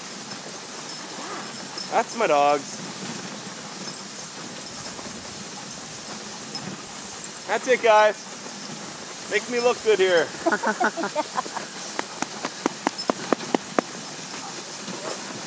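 Dogs' paws patter softly on packed snow.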